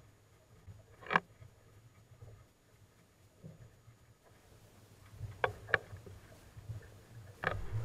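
Wind rumbles outdoors on open water.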